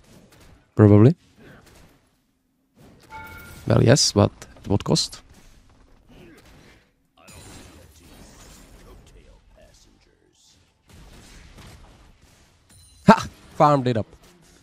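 Magic spells crackle and clash in a video game fight.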